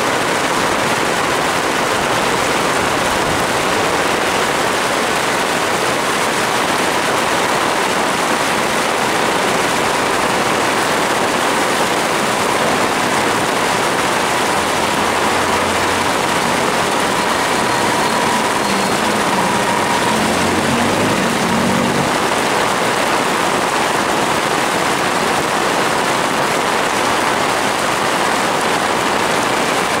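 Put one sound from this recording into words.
Heavy rain pours steadily onto a wet road.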